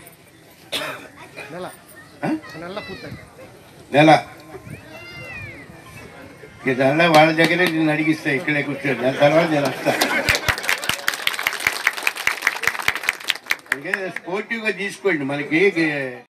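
An elderly man speaks with animation into a microphone over a loudspeaker.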